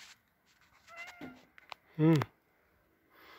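A cat meows loudly up close.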